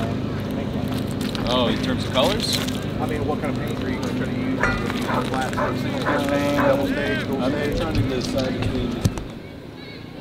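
A second man answers in conversation close by.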